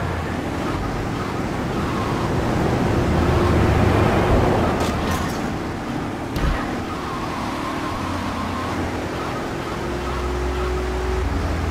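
A car engine hums steadily as a car drives along a street.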